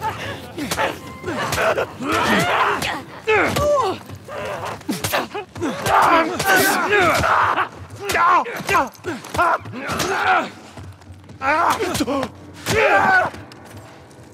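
Heavy blows land with sharp thuds during a struggle.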